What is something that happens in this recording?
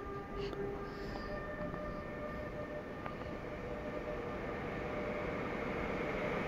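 A train approaches with a growing rumble under a large echoing roof.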